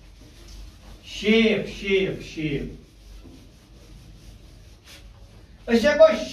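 A cloth rubs across a board.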